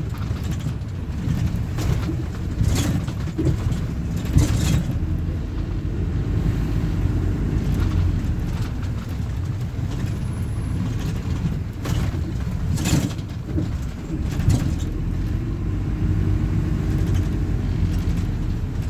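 The bus body rattles and clatters over the road.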